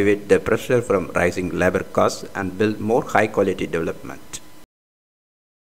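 A robot speaks in a voice.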